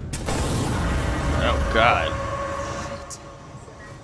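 A fire roars loudly and then dies away.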